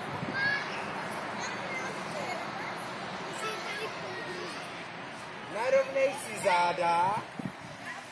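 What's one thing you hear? Young children call out and chatter outdoors.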